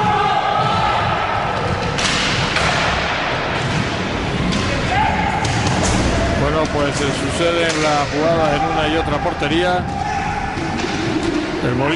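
Skate wheels rumble and roll across a wooden floor in a large echoing hall.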